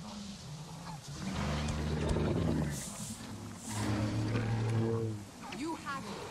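A large animal snorts and rumbles low and close.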